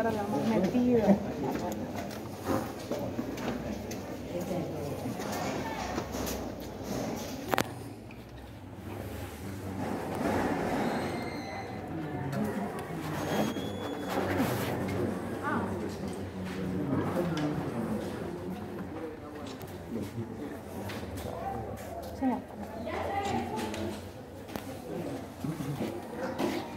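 Men and women murmur and talk close by in an echoing room.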